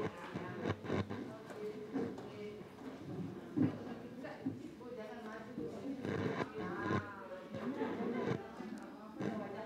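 Several women chat and murmur nearby.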